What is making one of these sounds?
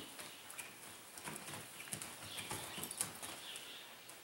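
A horse's hooves slide and skid through loose dirt.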